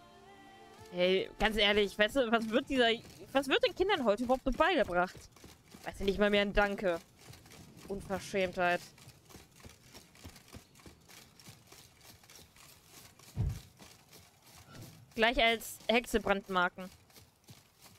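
A young woman talks with animation into a microphone, close by.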